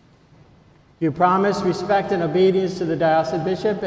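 A man chants slowly, heard through a microphone in a large echoing hall.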